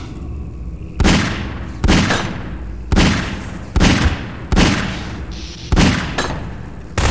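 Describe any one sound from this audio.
A video game revolver fires a series of shots.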